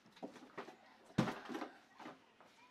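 A cardboard box thumps and scrapes across a carpet.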